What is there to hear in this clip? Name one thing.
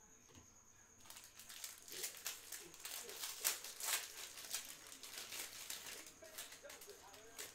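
Cardboard packs rustle and crinkle as they are handled.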